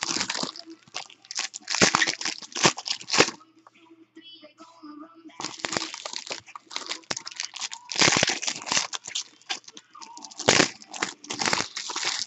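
Plastic wrappers crinkle and rustle as hands tear them open.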